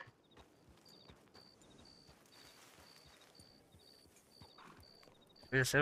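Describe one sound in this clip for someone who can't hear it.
A horse's hooves thud softly on grassy ground.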